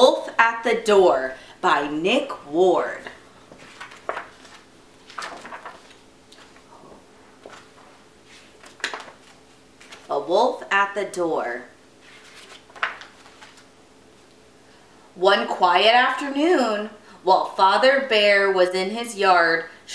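A woman reads aloud with animation close to a microphone.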